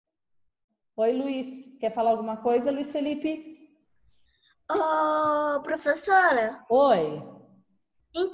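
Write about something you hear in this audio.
A child speaks with animation through an online call.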